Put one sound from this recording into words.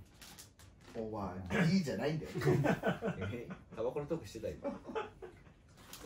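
Young men laugh together.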